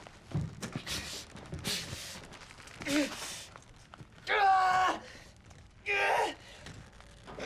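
A man yells and grunts loudly.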